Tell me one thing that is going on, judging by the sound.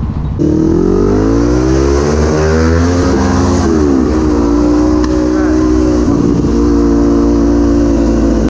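A motorcycle engine roars close by, revving up and shifting gears as it speeds along.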